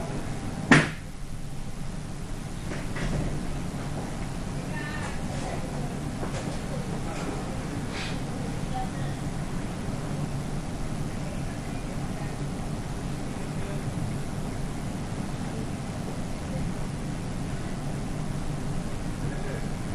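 An aircraft cabin hums steadily.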